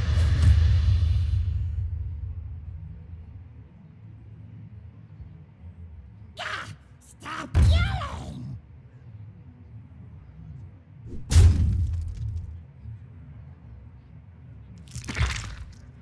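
A magical whoosh sounds in a game.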